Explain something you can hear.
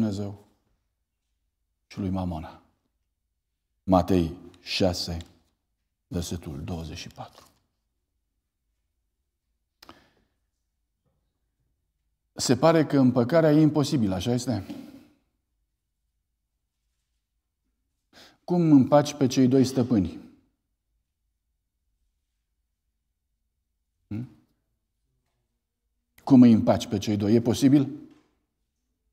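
A middle-aged man speaks calmly into a microphone, in phrases with long pauses.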